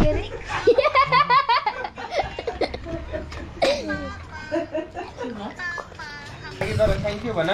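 Women talk nearby with animation.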